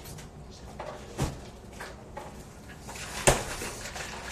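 A refrigerator door thuds shut.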